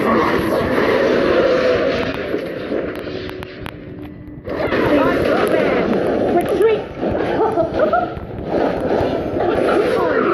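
Game sound effects of weapon strikes and magic blasts clash and whoosh.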